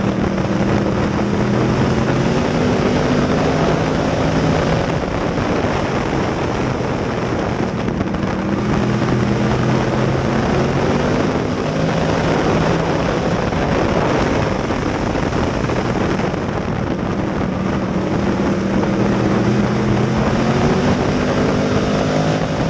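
Tyres rumble and rattle over a dirt track.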